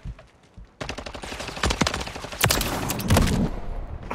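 A rifle fires sharp gunshots.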